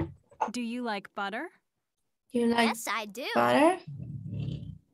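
A woman speaks clearly over an online call.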